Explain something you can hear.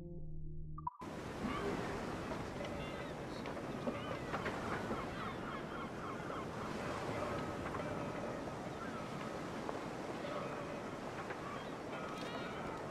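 Water laps gently against a wooden pier outdoors.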